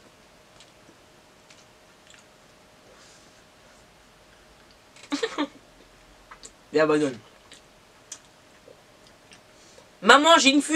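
A young man chews food with faint smacking sounds close by.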